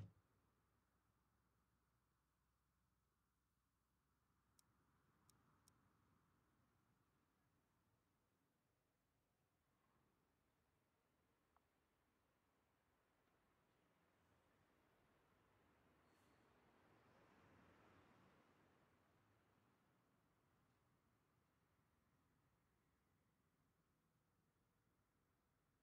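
A vehicle engine idles quietly.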